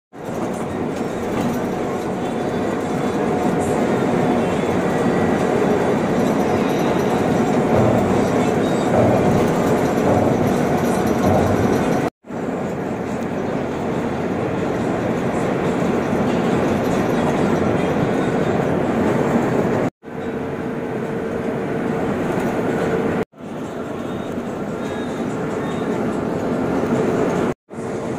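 Tyres roar steadily on a smooth road.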